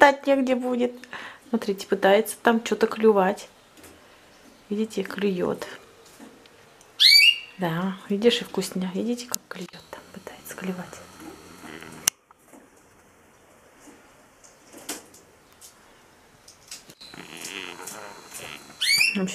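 A budgie chirps and warbles close by.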